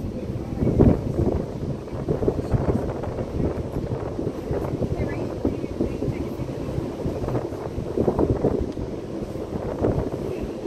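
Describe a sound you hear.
Open sea water churns and splashes in a steady rush.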